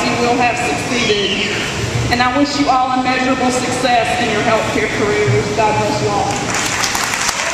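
A woman speaks calmly into a microphone in a large echoing hall.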